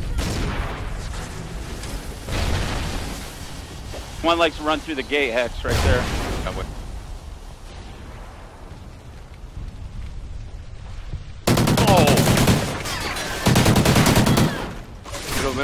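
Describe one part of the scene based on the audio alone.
Rapid gunshots crack nearby.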